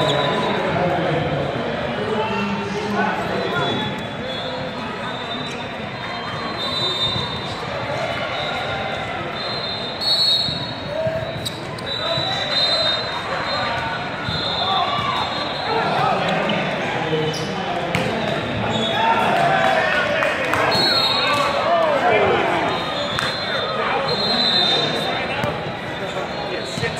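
Many voices chatter and shout in a large echoing hall.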